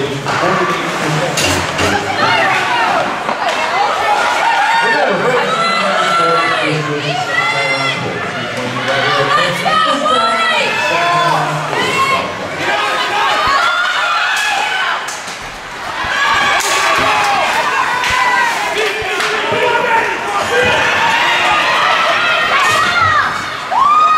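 A crowd of spectators shouts and cheers loudly in an echoing arena.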